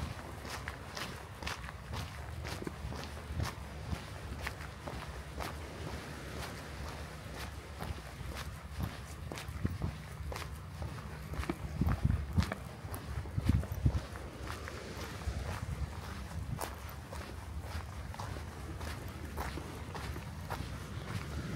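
Footsteps crunch steadily on a gritty path.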